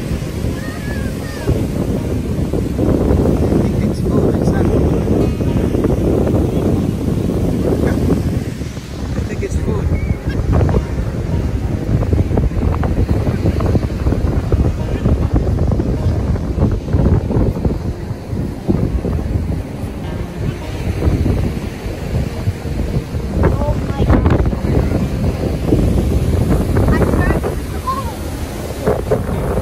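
Wind blows across the open beach.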